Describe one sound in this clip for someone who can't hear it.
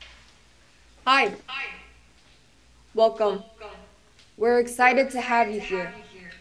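A young woman speaks calmly, heard through an online call.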